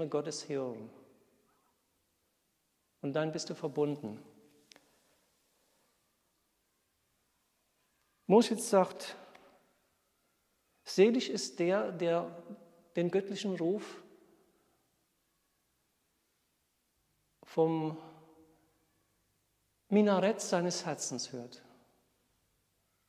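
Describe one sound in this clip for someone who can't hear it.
A middle-aged man speaks calmly and slowly, with long pauses.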